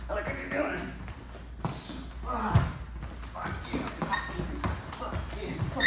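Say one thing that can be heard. Shoes shuffle and tap on a wooden floor.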